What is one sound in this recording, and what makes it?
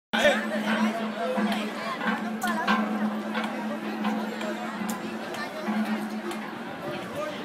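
A drum beats in a steady rhythm outdoors.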